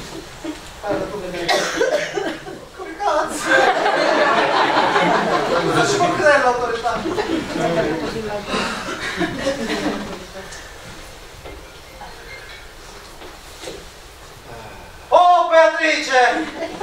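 A man speaks loudly on a stage in a hall.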